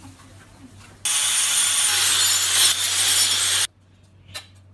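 An angle grinder whirs loudly against ice.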